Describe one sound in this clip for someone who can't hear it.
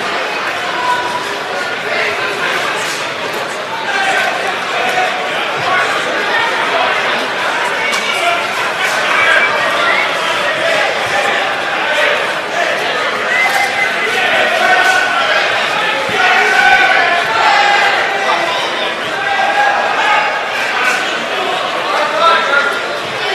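A large crowd of men and women chatters all at once in a big echoing hall.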